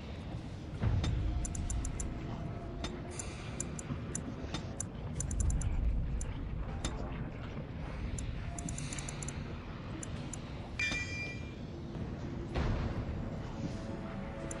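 Soft electronic clicks and ticks sound as menu selections change.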